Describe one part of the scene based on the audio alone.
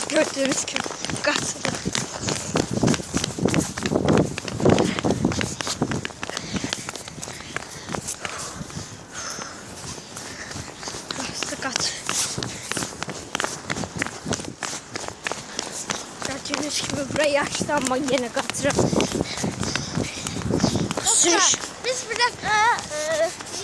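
A boy talks close to a microphone.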